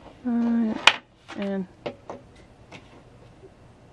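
A small plastic figure is set down on a hard surface with a light tap.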